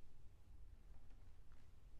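A violin plays softly.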